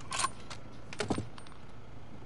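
A rifle clatters against wood.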